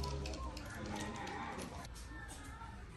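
A wheelchair rolls over a hard floor.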